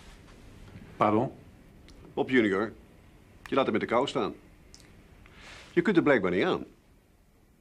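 A middle-aged man speaks firmly and calmly, close by.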